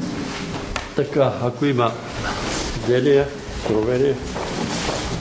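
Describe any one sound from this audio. An elderly man speaks loudly close by.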